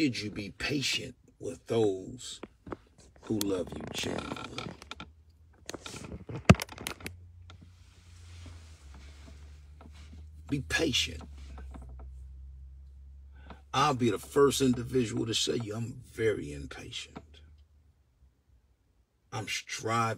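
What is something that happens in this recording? A man talks with animation close by, in bursts with pauses.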